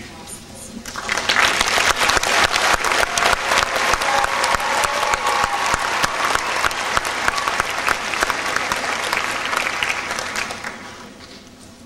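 An audience applauds in a large hall, then the clapping dies away.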